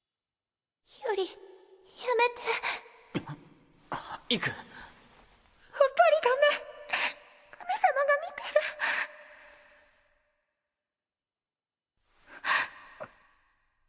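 A young woman speaks softly and emotionally.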